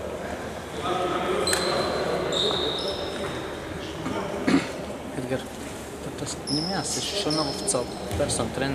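Men shout and call out across an echoing hall.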